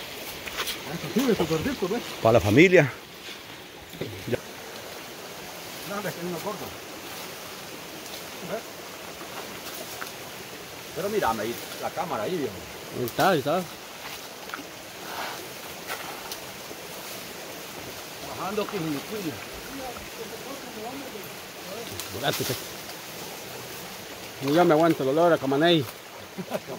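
A man talks loudly outdoors, close by.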